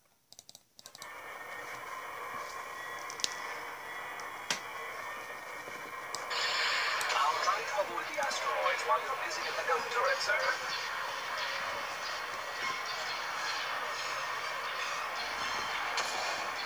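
Spaceship engines roar through small laptop speakers.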